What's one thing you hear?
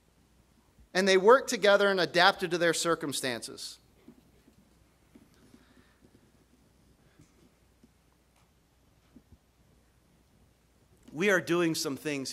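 A man speaks into a microphone in a calm, measured way, with pauses.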